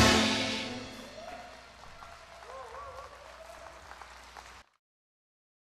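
A band and singers perform music in a large hall, heard through loudspeakers.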